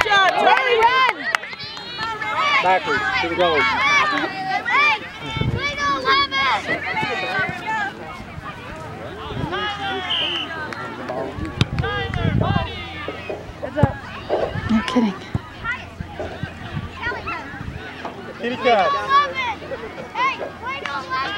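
Adults on the sidelines cheer and call out loudly outdoors.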